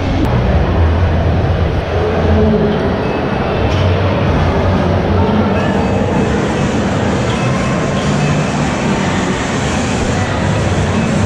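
A crowd of people murmurs and chatters in a large, echoing hall.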